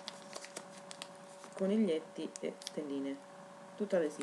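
A plastic bag crinkles in someone's hands.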